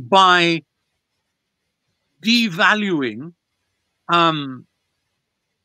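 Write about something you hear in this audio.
An elderly man speaks with animation over an online call, in short bursts.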